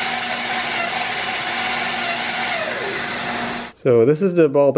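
A band saw motor whirs steadily with a loud humming rush.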